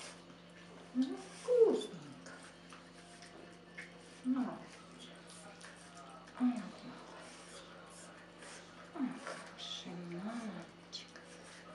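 A puppy whimpers in short, rising yelps.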